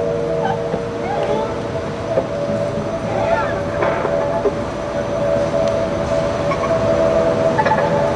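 A violin plays a melody.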